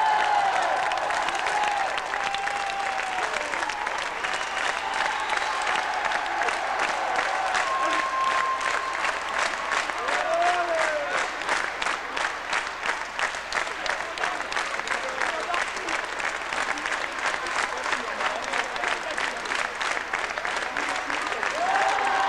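A large crowd cheers and whistles in an echoing hall.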